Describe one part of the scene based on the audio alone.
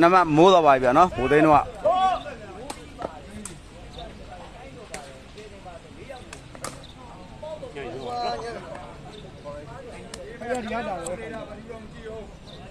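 A crowd of onlookers chatters and calls out nearby.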